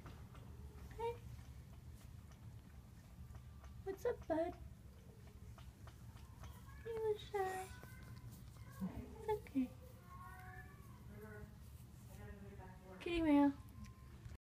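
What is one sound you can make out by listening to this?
A cat meows repeatedly up close.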